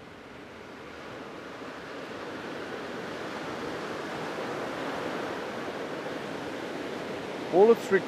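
Waves wash steadily on a shore, growing a little louder.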